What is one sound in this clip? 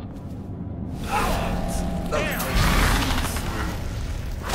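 A magical power swooshes with a loud, whooshing rush.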